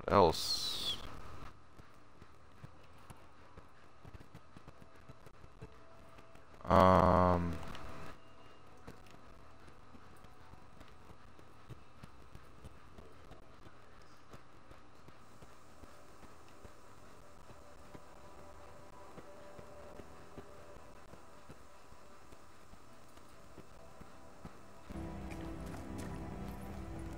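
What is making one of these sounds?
Footsteps tread softly across a hard floor.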